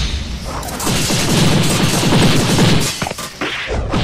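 Small objects whizz and clatter.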